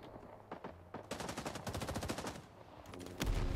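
A rifle fires a rapid burst close by.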